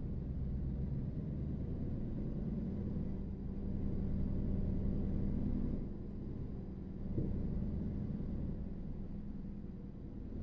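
A truck's diesel engine rumbles steadily at low speed.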